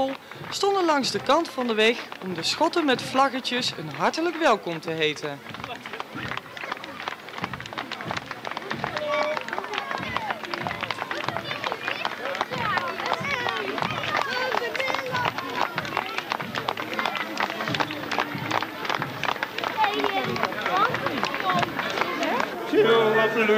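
A large crowd claps steadily outdoors.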